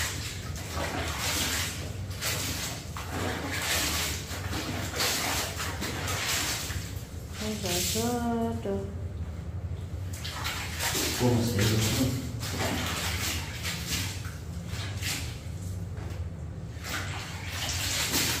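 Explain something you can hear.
Wet laundry sloshes and splashes as it is washed by hand in a plastic tub of water.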